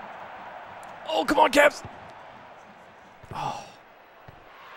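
A man speaks briefly and with animation into a close microphone.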